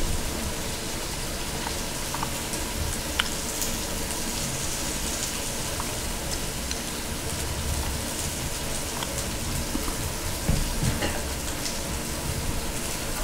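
Wooden chopsticks lightly tap and scrape against a ceramic rice bowl.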